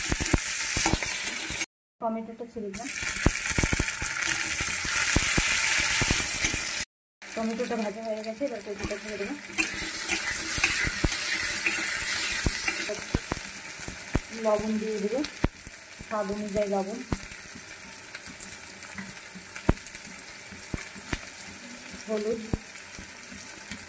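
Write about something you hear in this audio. A metal spatula scrapes and knocks against a pan.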